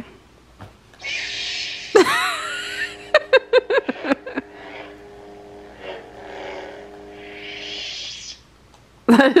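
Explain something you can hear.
A toy lightsaber hums and whooshes as it swings.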